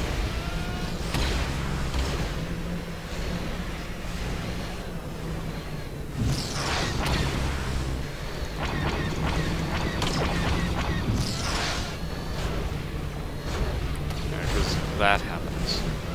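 Laser blasters fire in quick bursts.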